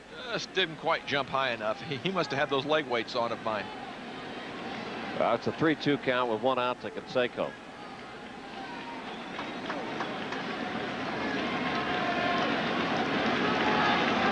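A large stadium crowd cheers and roars, growing louder.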